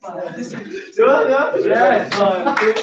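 Young men laugh loudly together.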